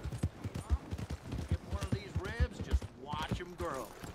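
A horse's hooves thud at a trot on dirt.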